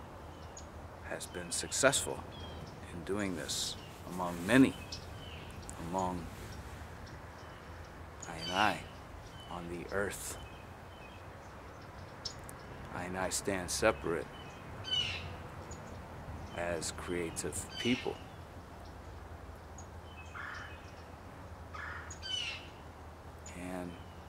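A man speaks calmly and haltingly close by, with pauses.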